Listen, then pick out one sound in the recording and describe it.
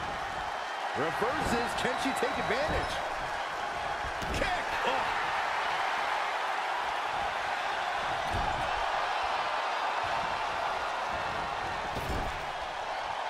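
Blows and slams thud heavily.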